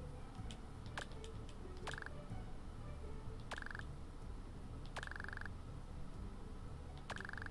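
A video game plays short electronic blips, one after another.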